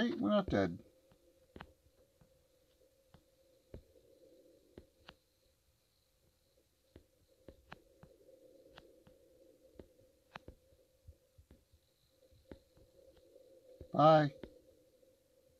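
A man speaks briefly into a headset microphone, close by.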